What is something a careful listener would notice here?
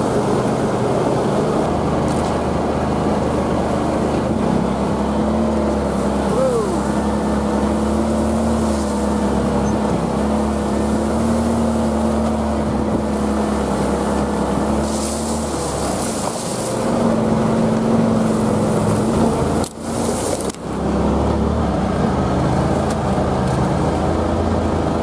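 Tyres crunch over snow on a bumpy track.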